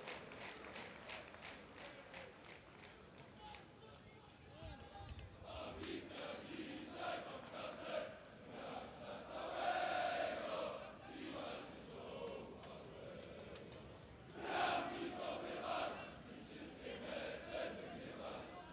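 A large crowd murmurs and chants in an open-air stadium.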